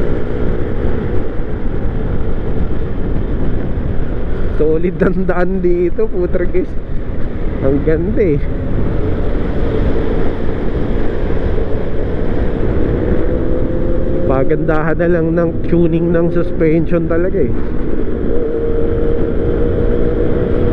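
A scooter engine hums steadily while riding.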